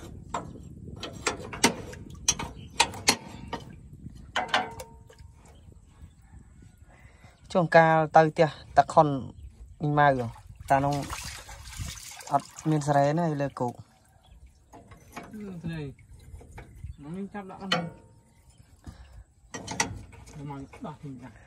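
Metal parts clink and knock close by.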